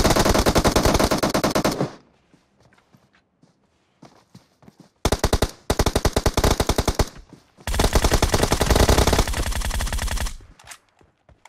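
Rapid automatic gunfire rattles in loud bursts.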